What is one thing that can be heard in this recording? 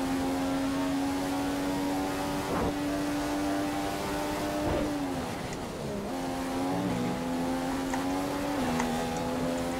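A racing car engine screams at high revs, drops sharply while braking, then climbs again through quick gear shifts.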